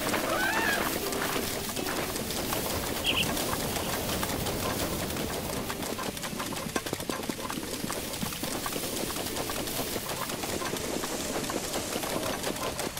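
Steady rain falls and patters all around.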